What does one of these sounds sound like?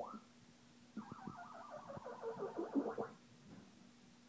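An arcade game plays a descending electronic tone.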